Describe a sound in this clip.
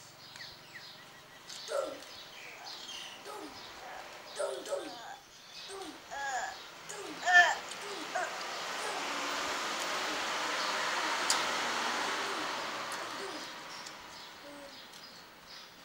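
A woman chews and slurps food noisily.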